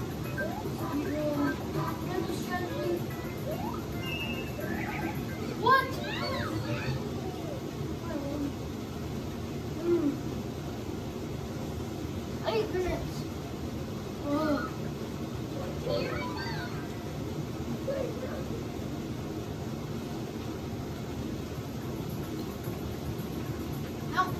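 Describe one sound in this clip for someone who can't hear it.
Video game music and sound effects play through television speakers.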